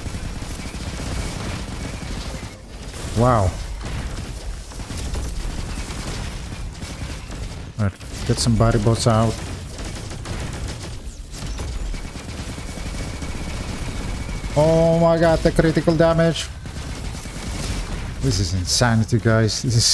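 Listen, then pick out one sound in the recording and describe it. Guns fire in rapid bursts with sharp electronic shooting effects.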